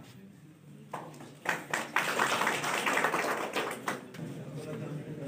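A group of people applaud with clapping hands.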